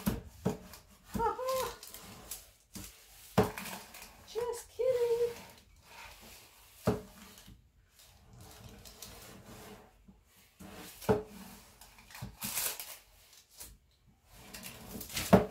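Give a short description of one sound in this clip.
An iron glides and scrapes over fabric.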